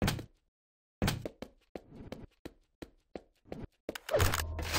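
Footsteps thud quickly on a stone floor.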